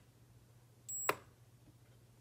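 A button clicks as a finger presses it.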